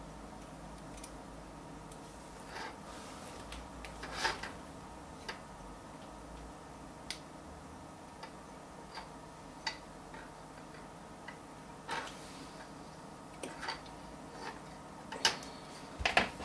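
Small metal parts clink and rattle as hands sort through them.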